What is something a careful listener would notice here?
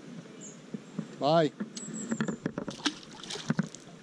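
A fish splashes into the water.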